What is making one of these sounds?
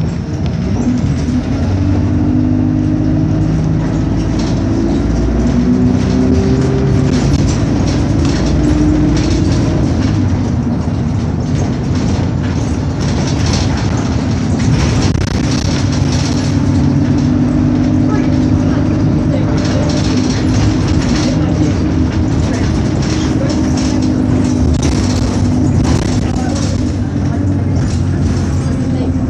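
A bus rattles and knocks as it rolls along the road.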